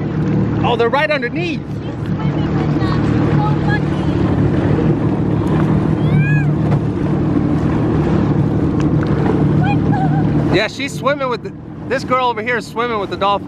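Water laps and splashes gently.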